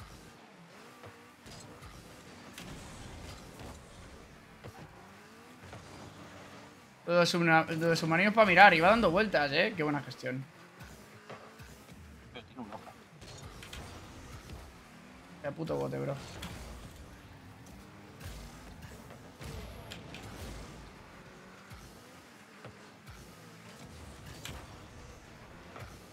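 Game cars hum and whoosh as they boost.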